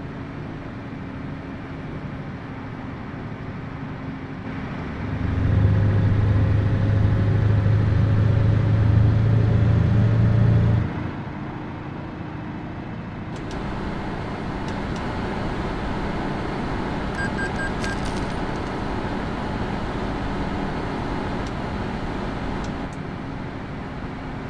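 Tyres roll along a road.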